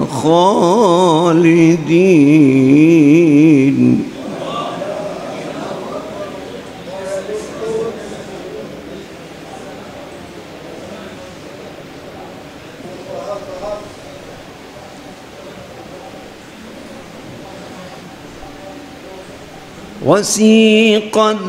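An elderly man sings with a wavering, drawn-out voice through a microphone.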